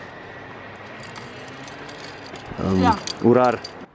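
Metal clips clink against a steel cable.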